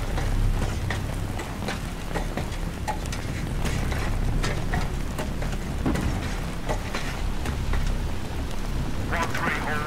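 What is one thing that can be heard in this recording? Boots clank on metal ladder rungs.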